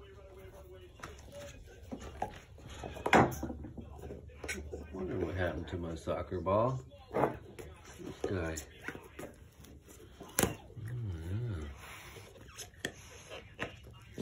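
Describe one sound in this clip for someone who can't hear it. A dog chews and crunches on a plastic-covered ball, with sharp cracks and snaps.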